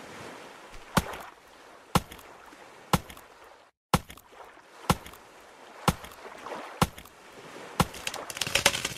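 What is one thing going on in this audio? A hatchet chops into a tree trunk with regular thuds.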